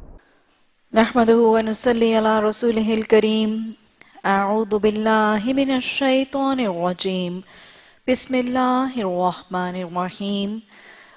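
A woman speaks calmly into a microphone, reading out.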